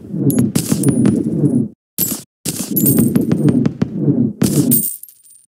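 A pickaxe chips at rock in quick, sharp taps.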